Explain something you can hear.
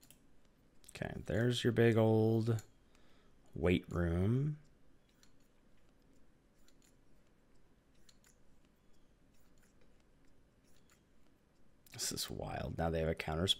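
A man speaks with animation, close to a headset microphone.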